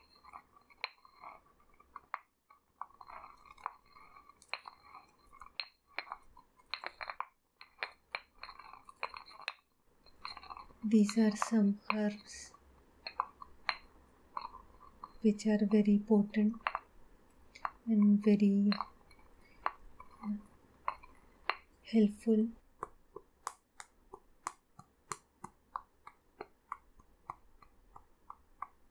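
A pestle grinds and taps in a stone mortar.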